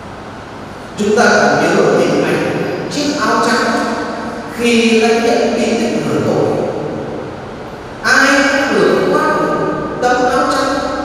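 A man speaks with animation into a microphone, his voice echoing in a large hall.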